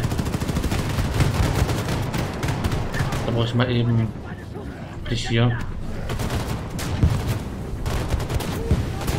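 A machine gun fires rapid bursts of shots.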